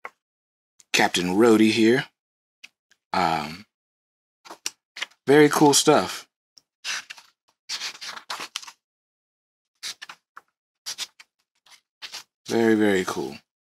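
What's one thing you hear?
Comic book pages turn with soft rustles and flaps.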